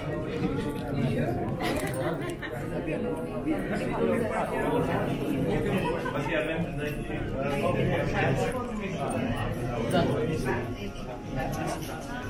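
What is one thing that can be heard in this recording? A crowd of men chatter close by.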